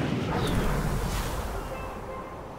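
A glider snaps open with a whoosh.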